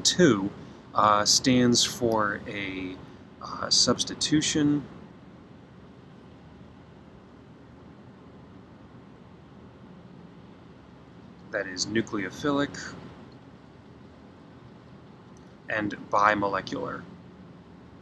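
A man speaks calmly into a microphone, explaining in short bursts with pauses.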